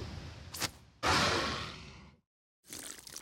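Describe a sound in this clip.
A dinosaur lets out a loud, raspy roar.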